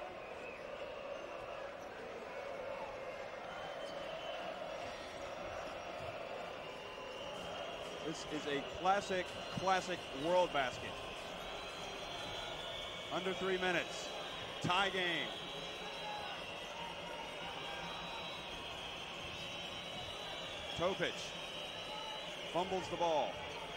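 A large crowd murmurs steadily in a big echoing hall.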